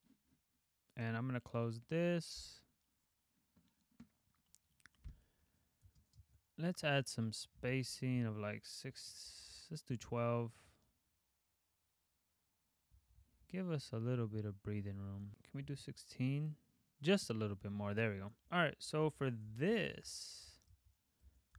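A young man talks calmly and close to a microphone, with pauses.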